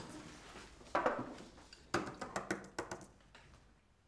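Cups clink as they are set down on a table.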